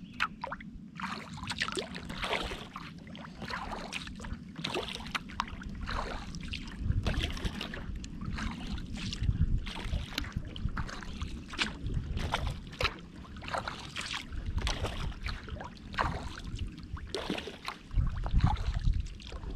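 Wind gusts across open water.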